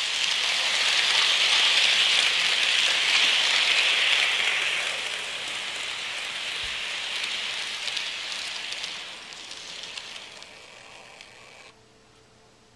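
A toy train rattles and whirs along its track close by, then fades.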